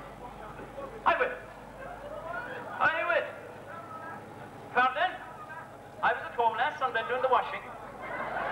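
A man shouts calls loudly through a microphone in a large echoing hall.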